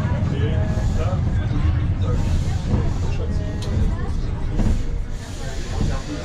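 Passengers murmur and talk nearby.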